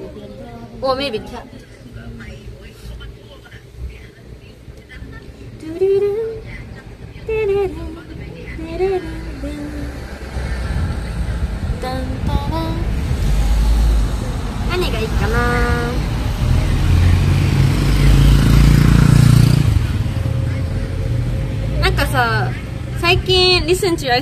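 A young woman talks casually, close to a microphone.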